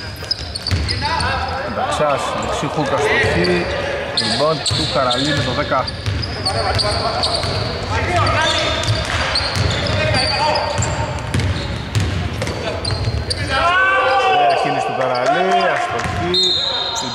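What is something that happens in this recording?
Players shout to each other across the court.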